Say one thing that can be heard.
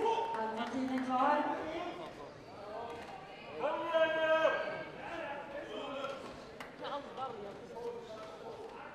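A man calls out loudly in a large hall.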